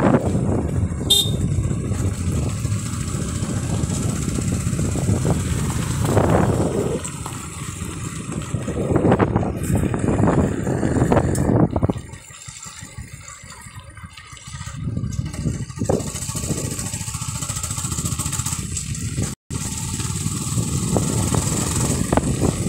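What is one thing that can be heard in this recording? Wind rushes across the microphone outdoors.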